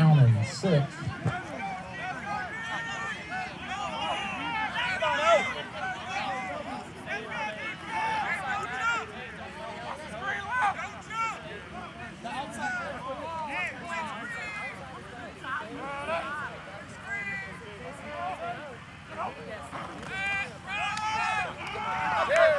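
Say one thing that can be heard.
A crowd of men and women shouts and cheers from nearby sidelines outdoors.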